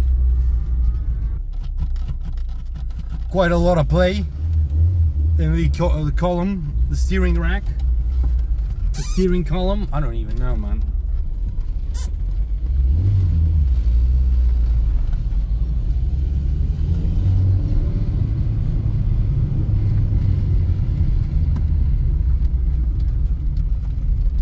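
A small car engine rumbles and revs while driving.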